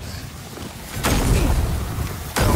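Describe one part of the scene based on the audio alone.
A fiery explosion bursts with a loud boom.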